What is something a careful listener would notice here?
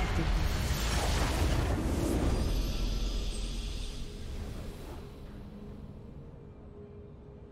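A video game victory fanfare swells loudly and then slowly fades.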